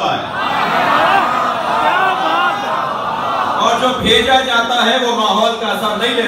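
A crowd of men cries out together in response.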